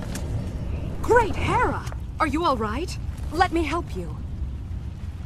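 A woman speaks in a firm, calm voice.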